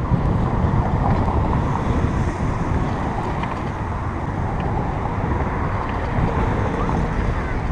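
Cars pass on a road.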